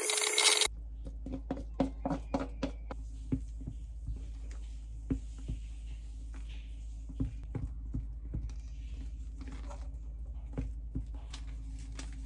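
A spatula scrapes and taps against a metal bowl.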